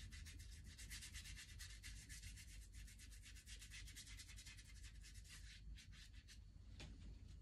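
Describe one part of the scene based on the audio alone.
A paintbrush scratches and dabs quickly on paper.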